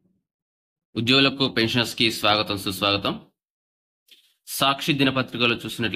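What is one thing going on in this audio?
A young man speaks calmly and close, as if into a microphone.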